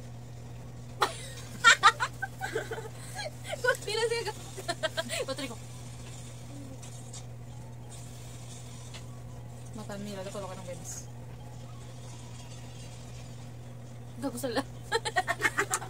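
Young girls laugh and shriek loudly close by.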